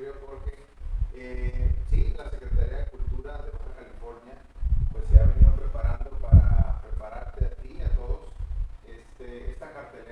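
A man speaks steadily and calmly into a close microphone.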